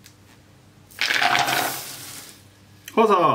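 Dry oats pour and rustle into a metal pot.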